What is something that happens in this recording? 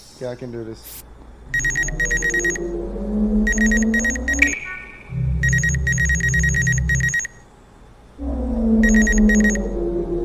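A medical scanner hums and beeps in a steady rhythm.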